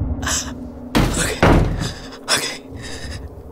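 A plastic case knocks and clatters as it is set down on a table.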